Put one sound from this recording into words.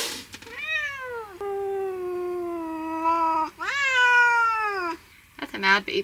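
A cat meows loudly in long, drawn-out wails close by.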